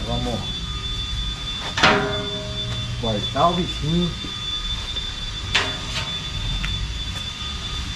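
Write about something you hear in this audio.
A thin metal sheet clangs and rattles as it is carried.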